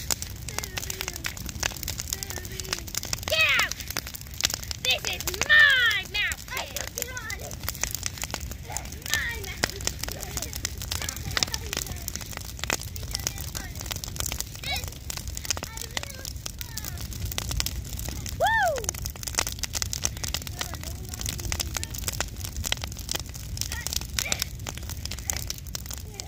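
Burning wood crackles and pops sharply.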